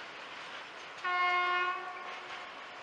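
A train horn sounds briefly.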